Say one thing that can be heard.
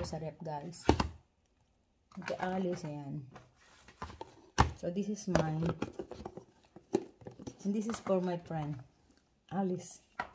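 Plastic food containers knock and clack.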